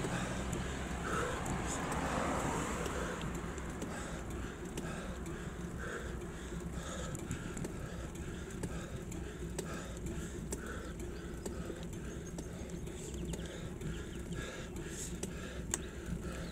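Bicycle tyres hum along a paved road.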